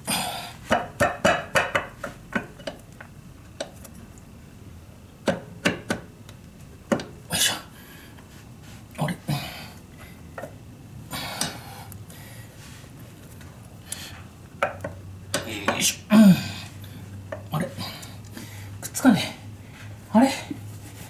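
Metal parts clink and scrape as a cover is fitted onto an engine by hand.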